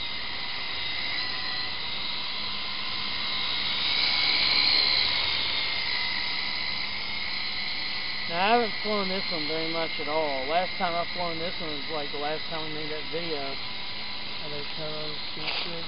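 A model helicopter's motor whines steadily overhead, rising as it passes close.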